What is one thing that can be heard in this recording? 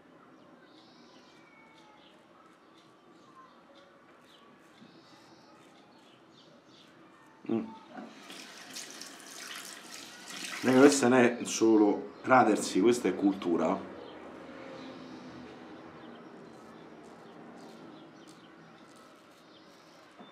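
A razor scrapes softly through stubble.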